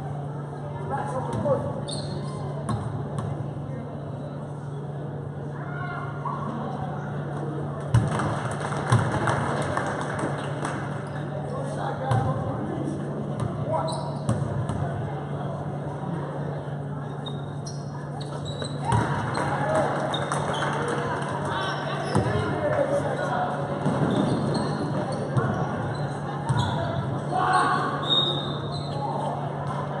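A crowd of spectators murmurs and chatters in a large echoing gym.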